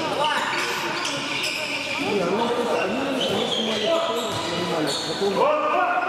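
Sports shoes squeak on an indoor court floor in a large echoing hall.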